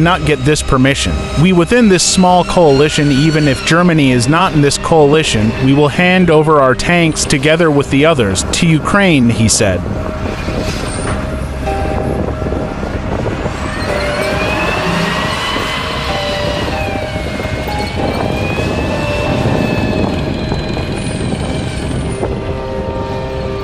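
A tank engine rumbles and whines.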